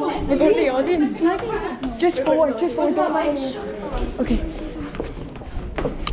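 A young woman talks and laughs close by with animation.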